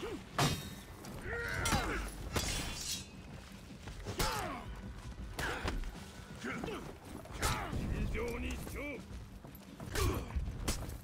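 Swords clash and clang in quick blows.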